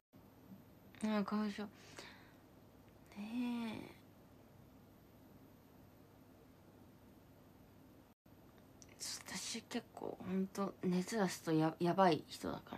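A young woman speaks softly and thoughtfully close to a microphone.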